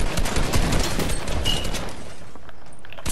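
A video game gun fires in rapid bursts.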